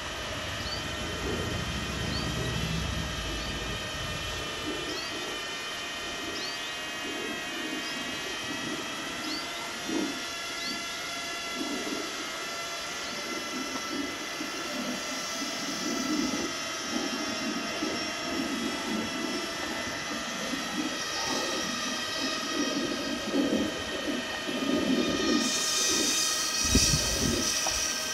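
Tyres rumble softly on pavement.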